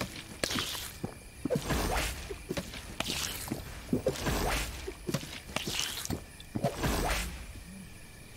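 A character gulps down drinks with loud slurping sounds.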